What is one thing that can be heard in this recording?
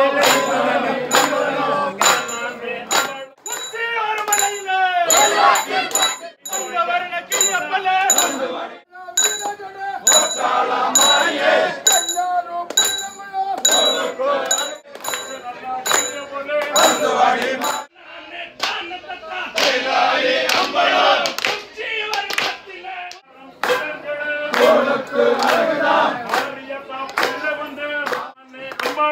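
A crowd of men chants and sings loudly nearby.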